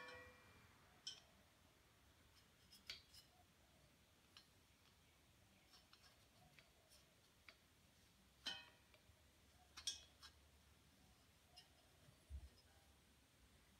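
A metal bar clinks against a steel gas cylinder.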